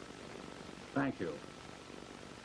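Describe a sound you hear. A middle-aged man speaks briefly into a telephone.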